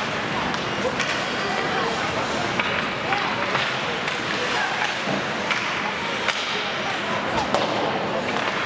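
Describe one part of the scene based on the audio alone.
Hockey sticks clack sharply against the puck.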